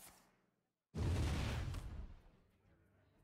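A fiery blast roars and crackles briefly.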